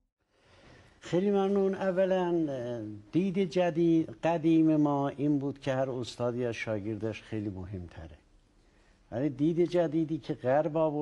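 An elderly man speaks calmly and cheerfully into a close microphone.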